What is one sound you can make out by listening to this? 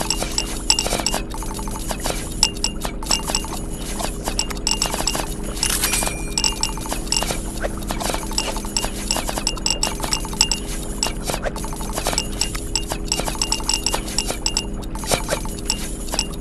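Short electronic chimes and clicks from a game ring out again and again.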